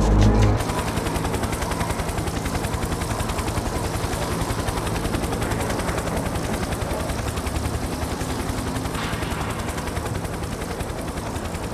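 Helicopter rotor blades chop rapidly and steadily, slowly fading as the helicopter flies away.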